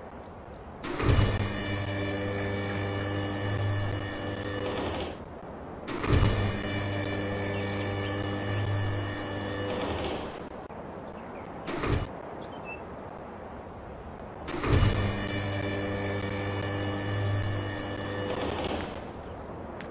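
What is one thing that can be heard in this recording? A hydraulic lift motor hums steadily in several bursts.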